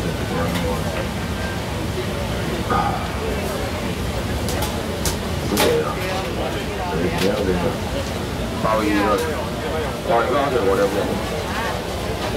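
Plastic bags rustle as vendors handle goods.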